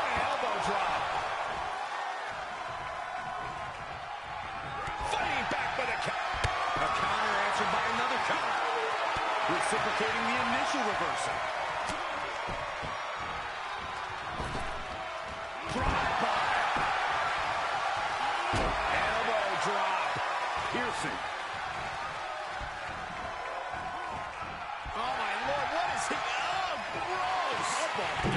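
A large crowd cheers and roars throughout, swelling at times.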